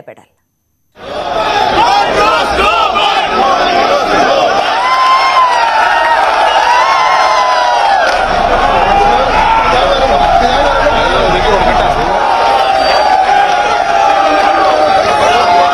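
A crowd of men talks and shouts outdoors, noisy and busy.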